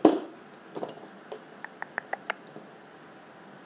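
Metal tools clink against each other as they are picked up.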